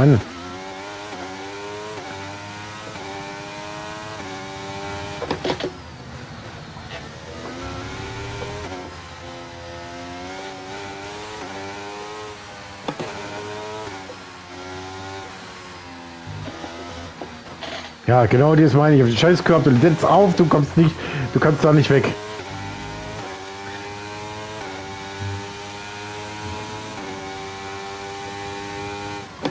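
A racing car engine screams at high revs, climbing in pitch and dropping sharply with each gear change.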